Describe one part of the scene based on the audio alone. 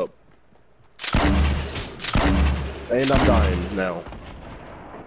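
A rocket launcher fires with a loud whoosh and boom.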